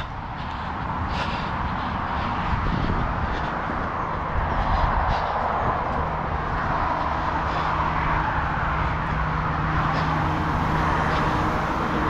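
Tyres roll over a rough road surface.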